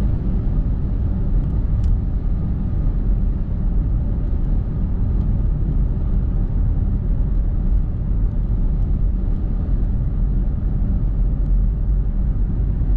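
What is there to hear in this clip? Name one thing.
Tyres roll steadily along a road.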